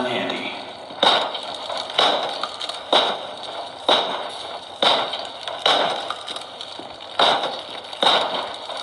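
Heavy blows thud against wooden boards, splintering them.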